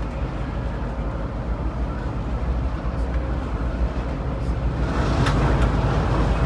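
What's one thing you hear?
Tyres roar on the road surface, growing louder toward the end.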